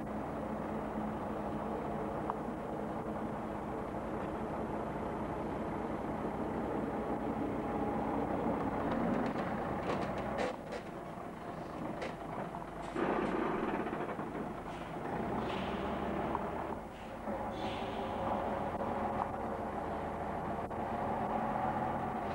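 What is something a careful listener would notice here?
Large tyres roll slowly over the road.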